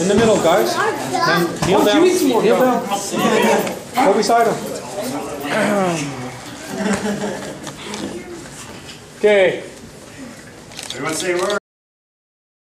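A group of men and boys shout and cheer together close by.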